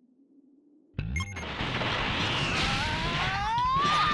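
A crackling energy burst roars and swells, rising in pitch.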